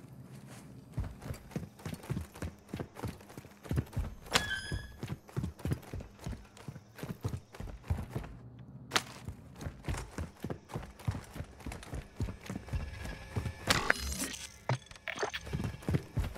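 Footsteps tread steadily across a hard floor indoors.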